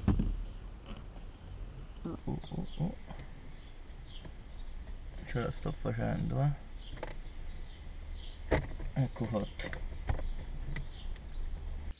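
Plastic trim clicks and creaks as hands pry at it.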